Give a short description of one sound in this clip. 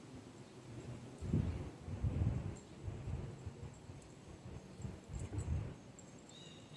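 A dog's paws thump on wooden stairs as it climbs.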